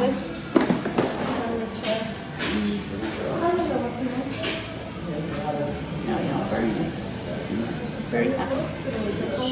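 An elderly woman talks calmly close by.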